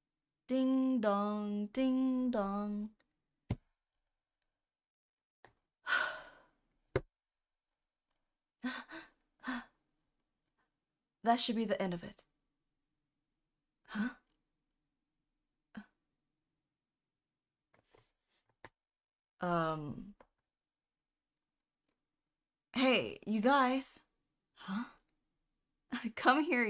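A young woman reads aloud and talks with animation close to a microphone.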